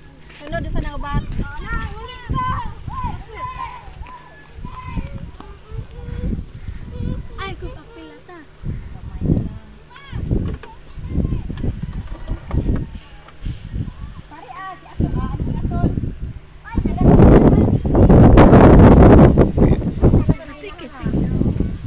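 Children and women chatter and laugh nearby.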